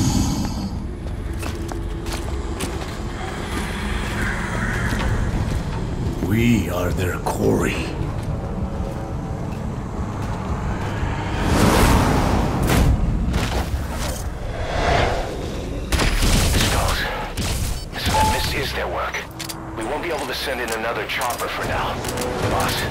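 Wind roars steadily through a dust storm.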